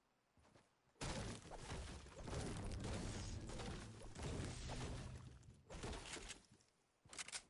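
A pickaxe strikes a tree trunk with repeated heavy thuds.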